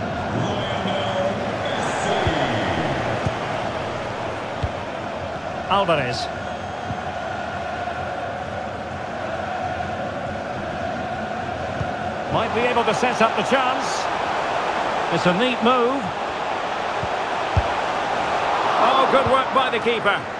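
A football video game's stadium crowd roars in a steady murmur.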